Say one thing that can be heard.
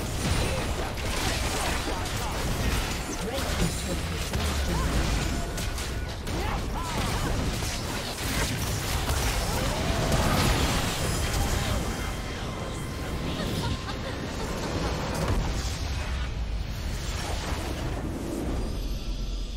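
Game spell effects and attacks crash and whoosh in a busy battle.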